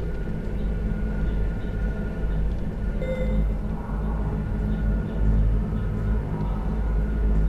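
A laser beam hums with a low, steady drone.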